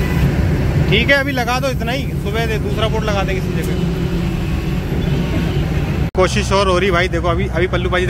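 Men talk loudly with one another outdoors.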